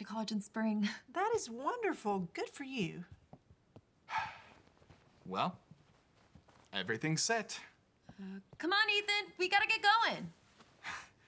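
A young woman speaks brightly.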